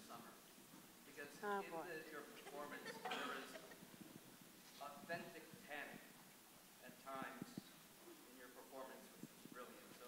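A woman speaks into a microphone in a hall, with a slight echo.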